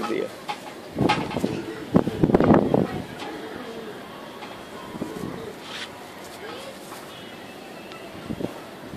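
A pigeon's wing feathers rustle as the wing is opened out.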